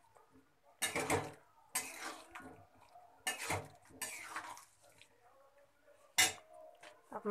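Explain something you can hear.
A metal spatula scrapes and stirs inside a pan.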